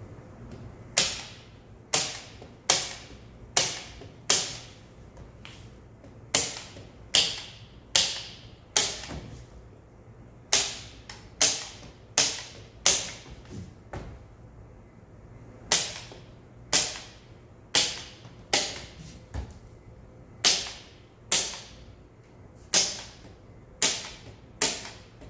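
A staple gun fires with sharp snaps, one after another, echoing in a large room.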